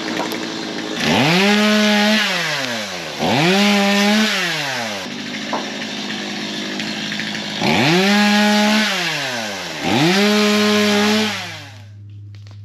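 A chainsaw revs up hard in loud bursts, then winds down.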